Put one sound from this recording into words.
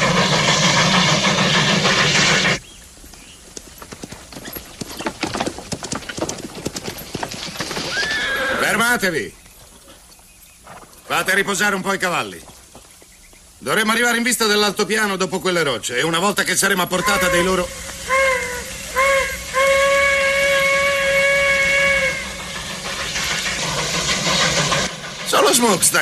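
A steam locomotive chugs and hisses loudly.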